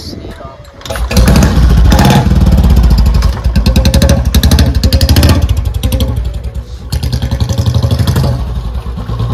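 A motorcycle engine starts up and thumps loudly, revving as the bike rides off.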